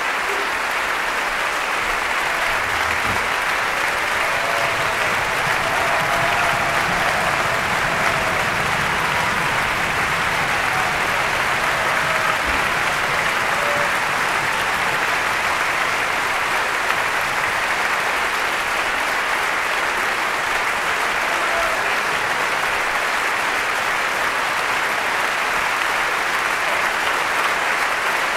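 A large audience applauds in a large hall.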